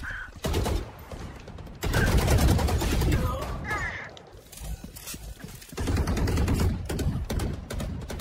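Gunfire crackles in rapid bursts from a game.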